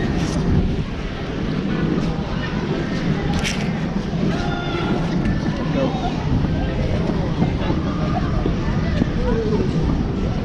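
A crowd of skaters chatters in a large echoing hall.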